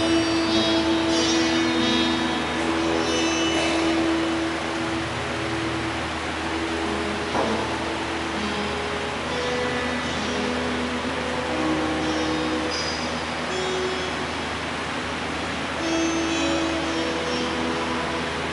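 A man sings a slow chant through a microphone in a large echoing hall.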